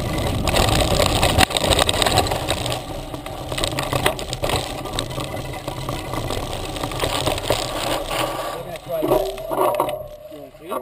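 Wind rushes loudly past a microphone while riding.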